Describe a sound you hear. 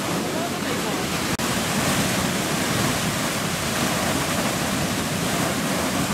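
A geyser roars and hisses steadily as water and steam gush upward.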